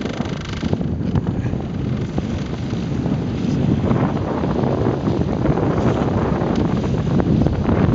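Choppy water splashes against a small boat's hull.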